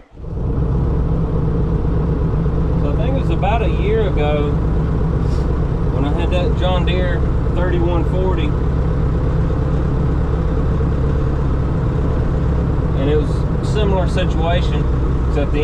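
A diesel tractor engine drones under load, heard from inside the cab.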